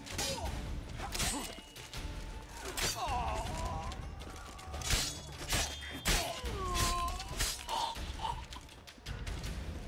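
Swords clash and strike sharply in a fast fight.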